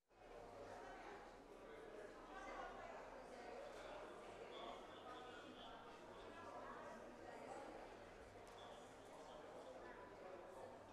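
A man speaks steadily into a microphone in a large, echoing hall.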